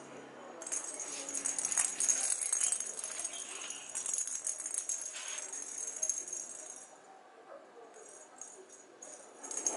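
A small ball rolls and taps across a hard floor.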